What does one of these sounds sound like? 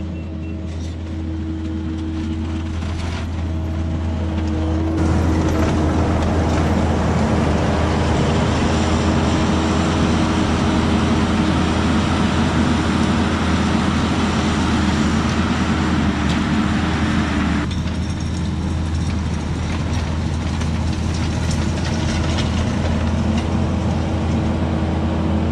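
A tracked loader's diesel engine rumbles steadily, growing louder as it nears.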